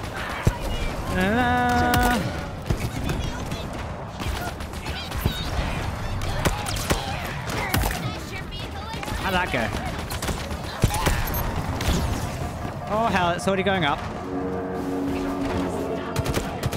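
Laser blasts fire in quick bursts.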